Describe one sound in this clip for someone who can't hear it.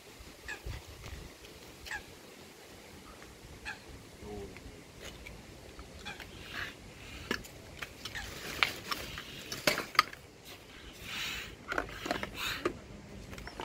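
Plastic parts knock and click.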